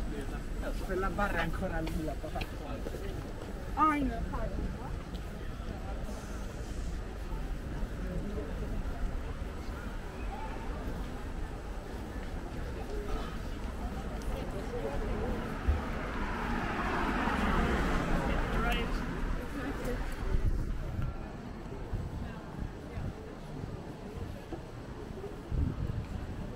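Footsteps shuffle on a paved walkway outdoors.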